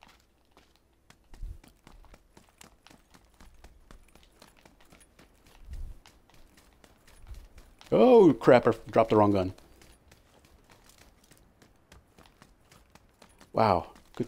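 Footsteps run through grass and over ground.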